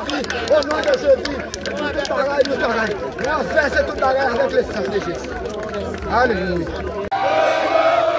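A man sings loudly outdoors.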